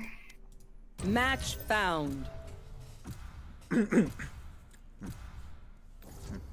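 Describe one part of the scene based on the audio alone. Electronic game alert tones chime during a countdown.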